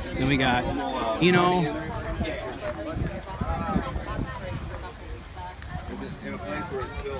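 Young men talk nearby in a lively conversation.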